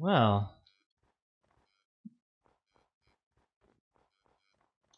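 Footsteps tread steadily on hard stone.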